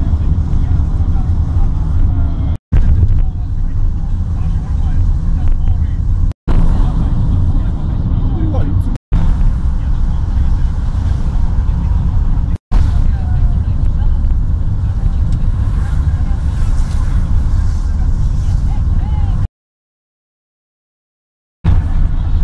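A car engine and tyres rumble steadily on the road, heard from inside the car.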